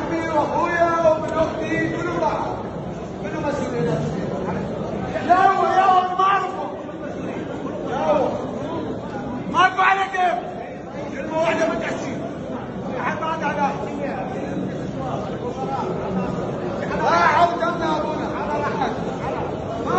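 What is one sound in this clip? Men in a crowd talk and shout over one another in a room with echo.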